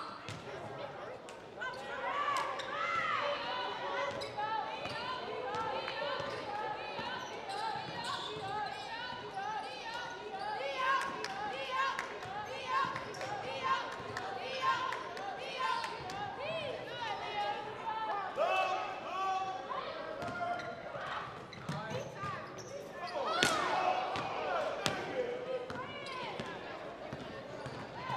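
A basketball thumps as players dribble it.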